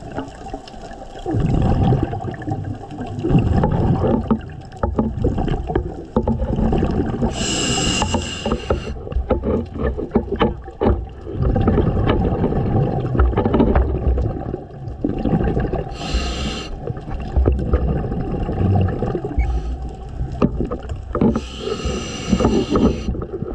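Water churns and rumbles in a muffled way underwater.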